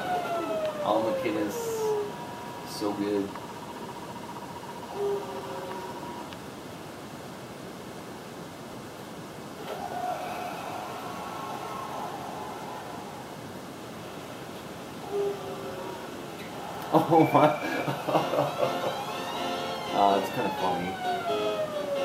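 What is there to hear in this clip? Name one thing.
Retro video game music and sound effects play through a television speaker.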